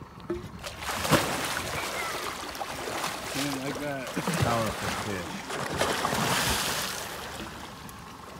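A large fish thrashes and splashes loudly at the water's surface.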